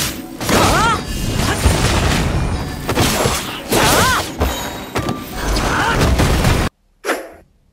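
Game combat effects crash and whoosh in rapid bursts.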